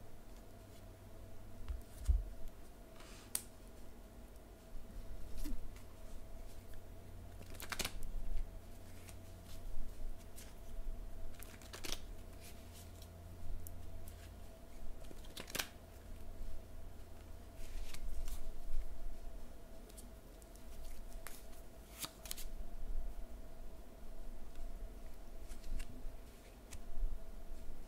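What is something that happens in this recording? Cards rustle and tap as hands handle them.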